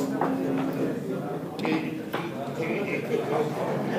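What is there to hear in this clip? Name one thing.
Wooden checkers click against a game board as they are moved.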